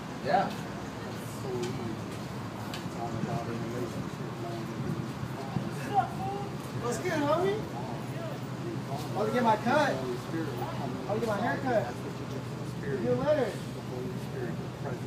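A middle-aged man talks animatedly up close.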